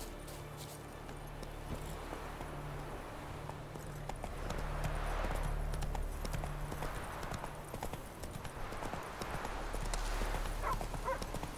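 A horse's hooves thud at a gallop on a dirt track.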